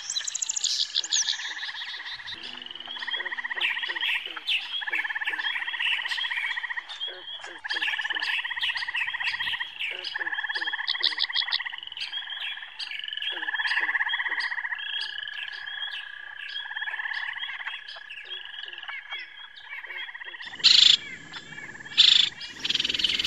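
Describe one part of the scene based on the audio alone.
Small birds chirp and twitter rapidly and continuously nearby.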